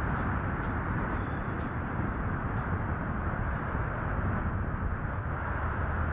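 Wind rushes loudly past the microphone of a hang glider in flight.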